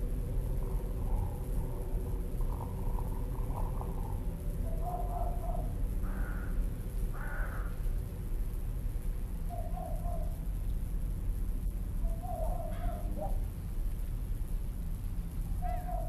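Crows caw now and then in the distance.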